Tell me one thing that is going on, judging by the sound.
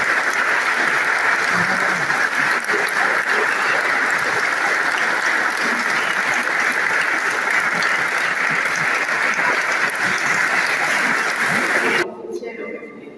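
A large crowd applauds loudly in an echoing hall.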